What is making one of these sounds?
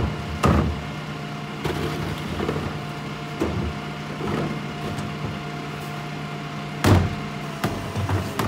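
Plastic bin wheels rumble over pavement.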